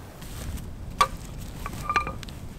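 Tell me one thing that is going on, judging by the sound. A wooden mallet knocks on wood.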